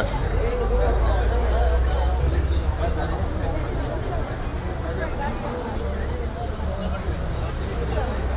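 Car engines hum and idle nearby.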